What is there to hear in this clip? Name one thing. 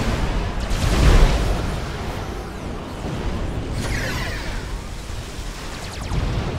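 Guns fire and shells explode in a battle.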